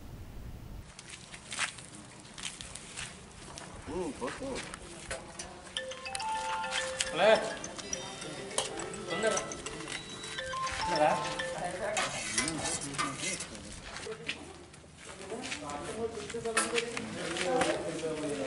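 Metal dishes and serving pots clink as food is served.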